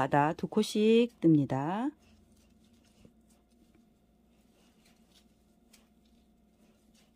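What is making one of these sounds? Yarn rustles softly as hands crochet.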